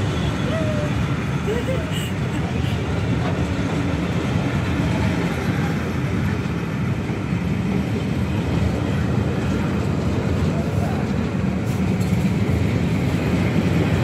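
Train carriages rumble steadily past close by on the rails.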